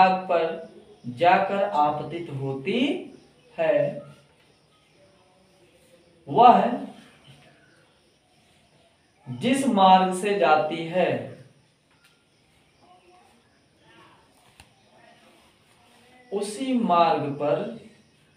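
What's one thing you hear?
A young man speaks calmly in short bursts with pauses, close by.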